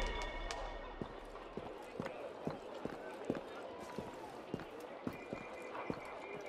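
Footsteps patter quickly across roof tiles.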